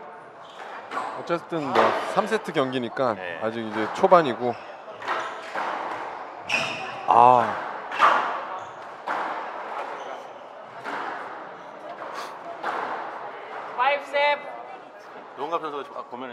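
A squash ball smacks against the walls and rackets in a quick rally.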